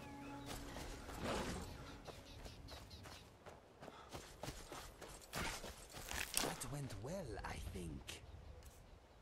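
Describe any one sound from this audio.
Footsteps tread on grass and leaves.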